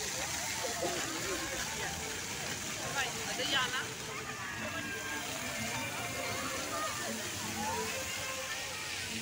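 Fountain jets of water splash and hiss steadily.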